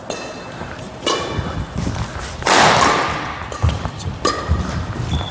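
A racket strikes a shuttlecock with sharp smacks.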